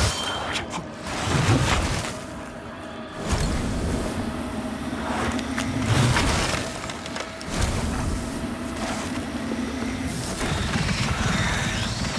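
Heavy weapon blows strike and clang in a fight.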